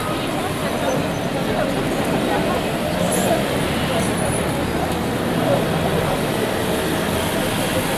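Cars drive by on a street.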